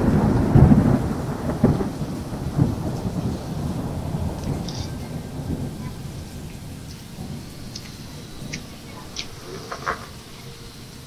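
Water rumbles and swirls in low, muffled surges, heard from underwater, fading over time.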